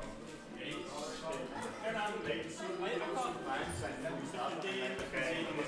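Several people chatter in the background.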